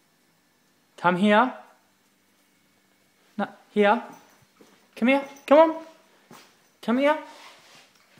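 A young dog barks in short, high yelps close by.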